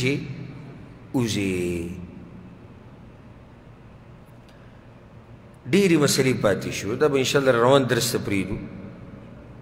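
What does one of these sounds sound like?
A man chants slowly and melodiously into a microphone in a reverberant room.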